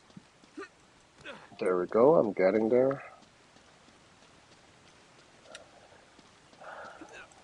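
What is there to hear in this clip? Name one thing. Footsteps patter on rock.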